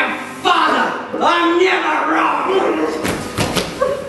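A man speaks in a loud, theatrical voice nearby.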